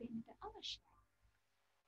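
A young man speaks briefly over an online call.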